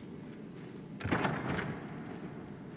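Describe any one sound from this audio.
A heavy wooden chest creaks open.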